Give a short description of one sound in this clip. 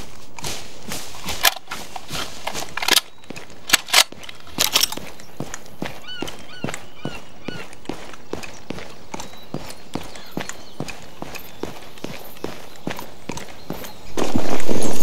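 Footsteps crunch steadily on a paved road.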